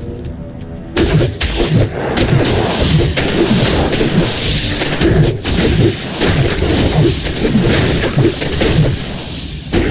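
Blades strike and thud in a rapid fight.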